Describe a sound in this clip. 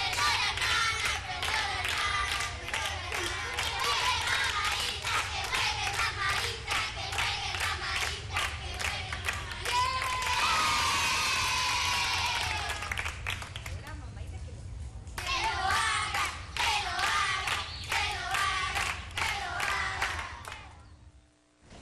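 A crowd of children claps rapidly.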